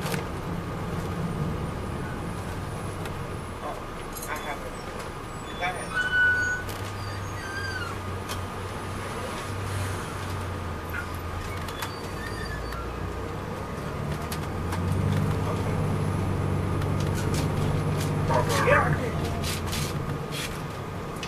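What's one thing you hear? A diesel coach bus engine drones, heard from inside the bus.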